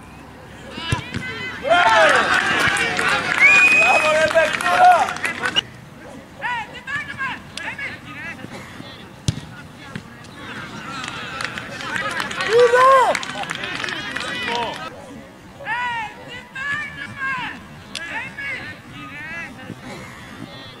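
Young men shout and call out across an open playing field.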